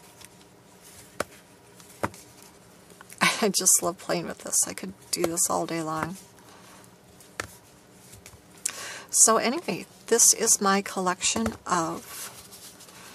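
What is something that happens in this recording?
Paper cards tap and rustle as they are handled.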